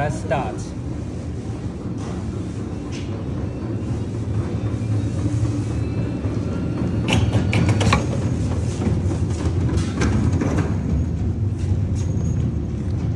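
A machine's air pump hums steadily.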